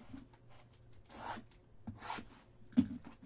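A knife slices through plastic wrap on a box.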